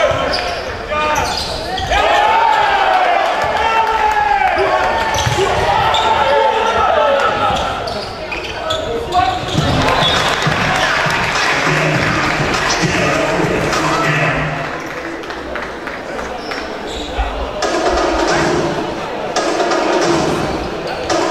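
Sneakers squeak on a hard floor in a large echoing hall.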